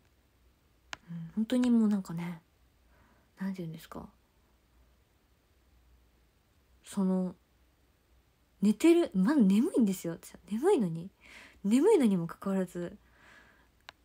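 A young woman speaks softly and casually, close to a phone microphone, with pauses.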